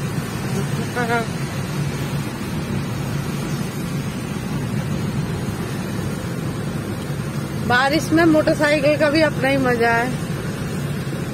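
Rain patters steadily on a car windscreen.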